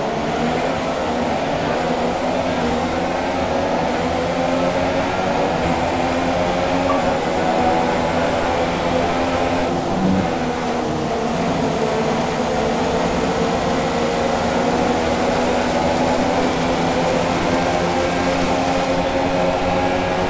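Rain spray hisses under the tyres.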